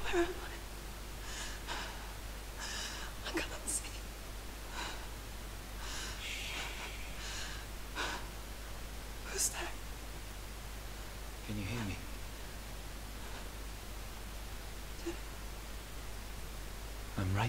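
A young woman whispers fearfully close by.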